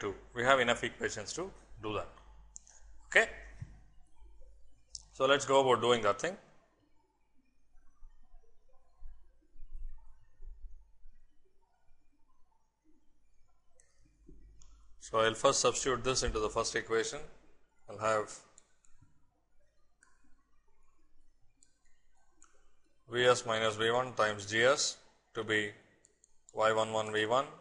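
A man speaks calmly and close to a microphone, with long pauses.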